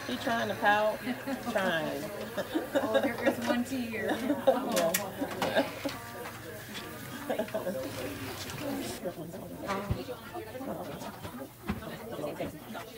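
A woman speaks calmly and gently close by.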